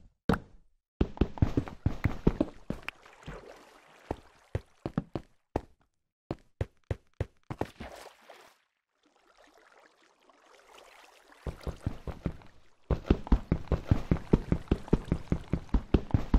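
A pickaxe chips at stone in quick, dry knocks.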